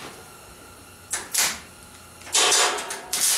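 An arc welder crackles and buzzes close by.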